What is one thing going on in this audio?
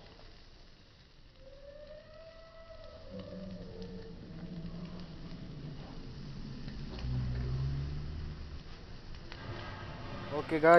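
A fuse fizzes and crackles as it burns.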